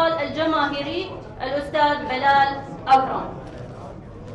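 A woman speaks into microphones, heard through a loudspeaker in a large room.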